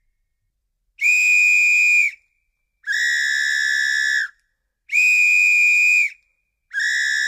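A second whistle blows in loud, shrill blasts, alternating two pitches.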